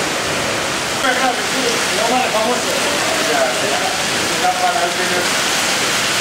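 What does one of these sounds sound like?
Hail patters and bounces on the pavement.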